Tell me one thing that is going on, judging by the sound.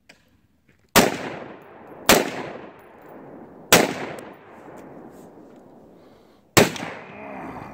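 A rifle fires single loud shots outdoors, echoing off across open ground.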